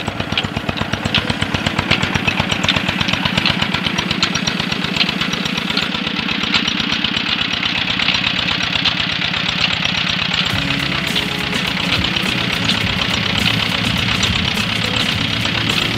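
A diesel engine chugs rapidly and steadily close by.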